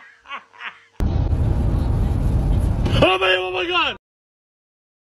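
A car's engine rumbles low inside the cabin.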